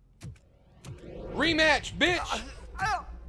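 A middle-aged man shouts loudly with excitement.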